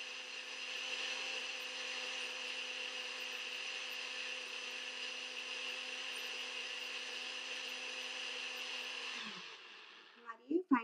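A blender motor whirs steadily and then winds down.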